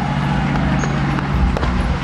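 Tank tracks clatter.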